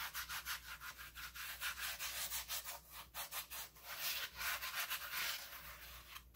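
Hands rub and scrape a crusty loaf with a dry rustling sound.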